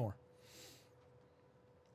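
A young man breathes out sharply close to a microphone.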